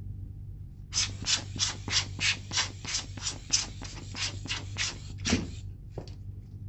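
A rubber air blower puffs in quick repeated bursts.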